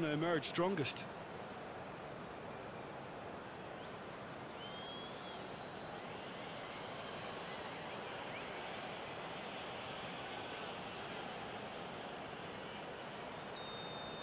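A stadium crowd murmurs steadily in a large open space.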